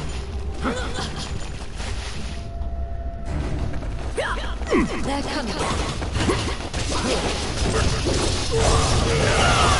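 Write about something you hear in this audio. Game battle sounds of blades striking and clashing play loudly.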